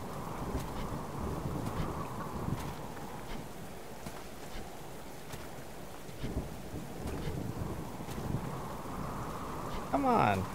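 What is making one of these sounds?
Footsteps crunch on grass and gravel.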